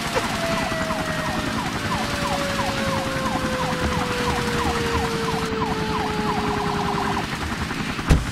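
Water sprays from a hose with a steady hiss.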